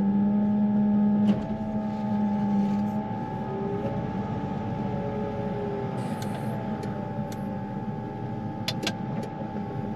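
A diesel engine of a wheel loader hums steadily, close by.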